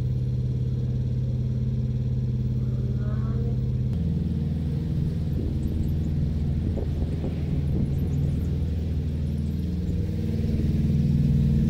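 A boat engine chugs steadily close by.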